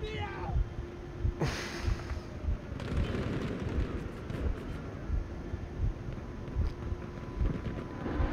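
Aircraft engines drone overhead.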